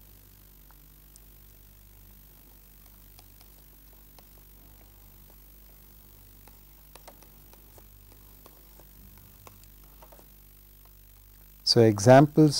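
A pen taps and scratches softly on a tablet.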